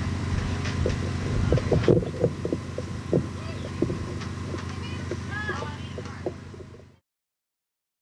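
A man talks into a microphone on stage.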